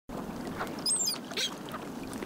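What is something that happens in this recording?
Gulls call with high, sharp cries.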